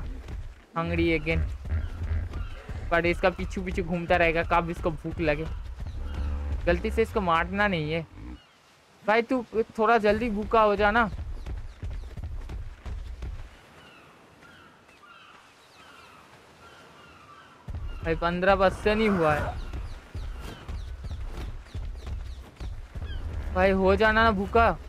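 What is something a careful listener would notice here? A large creature's heavy footsteps thud on sand.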